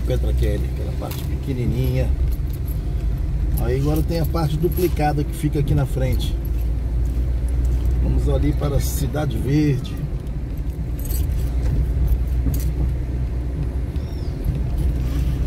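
A car engine rumbles low and steady from inside the moving car.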